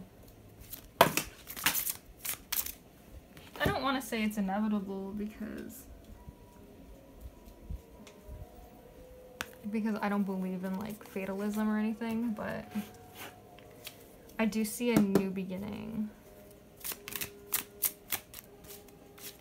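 Playing cards rustle and slap as hands shuffle and lay them down.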